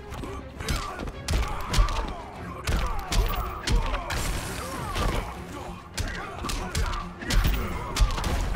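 Heavy punches and kicks land with loud thuds and whooshes.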